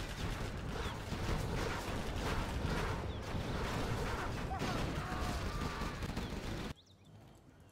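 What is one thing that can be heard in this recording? Cannons fire in rapid bursts.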